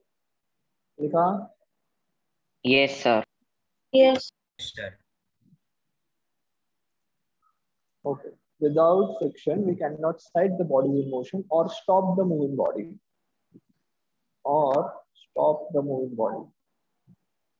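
A young man speaks calmly into a close microphone, with pauses.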